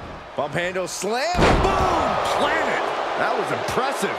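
A heavy body slams onto the mat.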